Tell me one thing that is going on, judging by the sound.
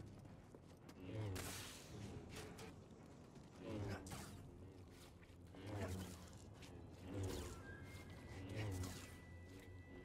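Lightsaber blades clash and crackle with sparks.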